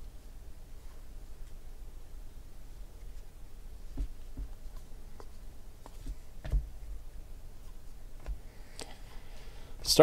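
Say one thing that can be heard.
Trading cards slide and flick against each other as they are shuffled.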